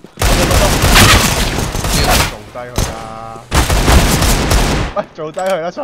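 Gunfire rattles loudly in rapid bursts.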